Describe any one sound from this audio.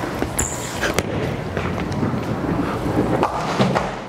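Pins crash as a bowling ball strikes them.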